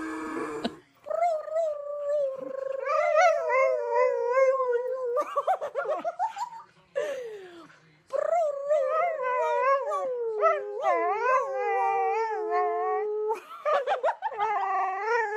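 A dog howls and yowls in long, wavering notes close by.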